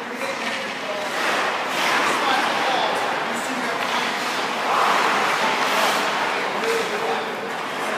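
Skates scrape on ice.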